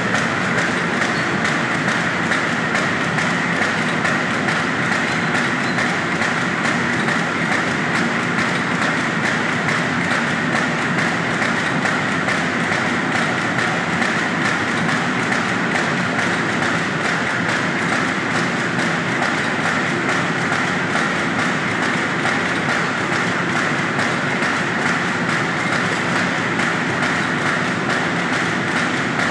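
A machine runs with a steady, fast rhythmic clatter.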